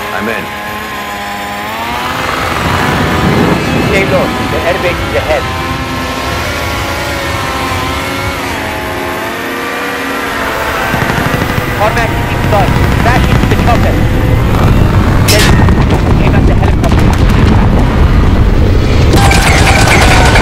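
A helicopter engine drones and its rotor thumps overhead.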